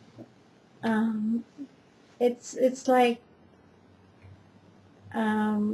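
A middle-aged woman talks calmly and close by, in short bursts.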